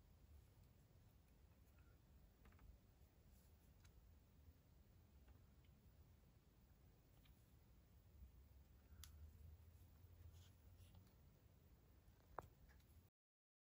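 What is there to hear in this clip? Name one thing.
A doll's plastic shoes and limbs tap and rustle softly against plastic packaging.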